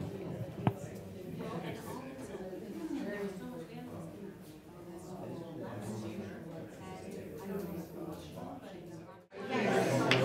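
An older man speaks calmly at a distance in a large room.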